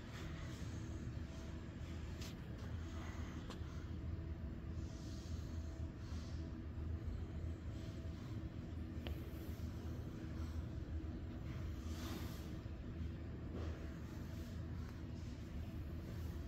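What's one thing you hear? A baby breathes softly in sleep.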